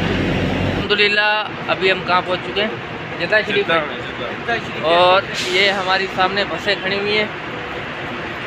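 A young man talks close by with animation.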